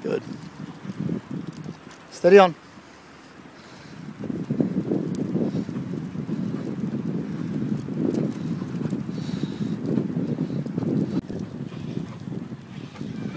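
A dog pants hard while running.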